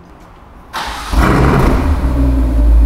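A sports car engine starts up with a sudden roar.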